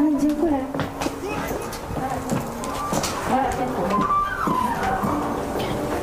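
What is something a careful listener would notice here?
A middle-aged woman talks loudly and urgently.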